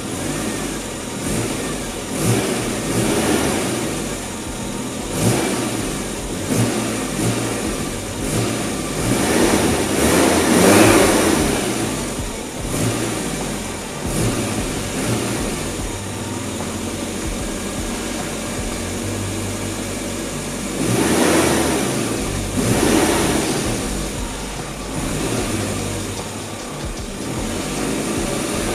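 A small car engine idles with a low, uneven rumble.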